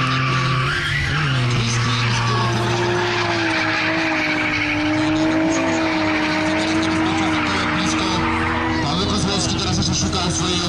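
Bicycle tyres crunch and skid on a loose dirt track.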